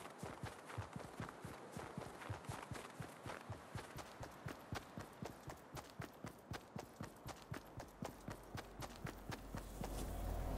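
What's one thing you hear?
Running footsteps crunch rhythmically on snow.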